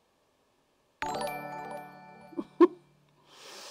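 A bright alert chime rings out and fades.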